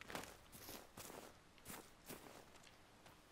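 Footsteps crunch on dry leaves and dirt.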